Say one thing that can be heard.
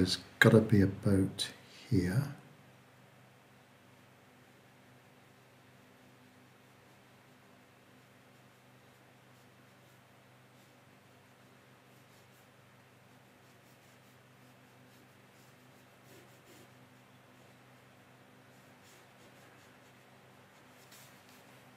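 A watercolour brush strokes across paper.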